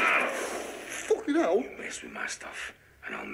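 An older man speaks angrily nearby.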